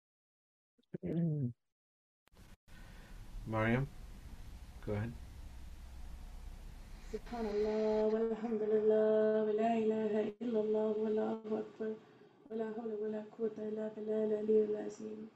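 A middle-aged woman sings softly with long, held notes.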